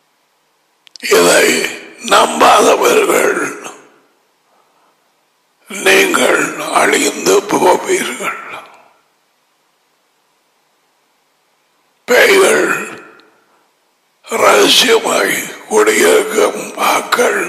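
A man speaks with animation through a close headset microphone, pausing between phrases.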